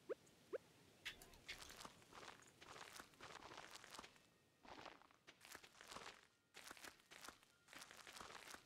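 A young man talks calmly and casually into a close microphone.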